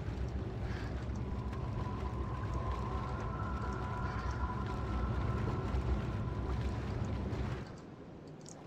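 Sea waves wash and roll against rocks.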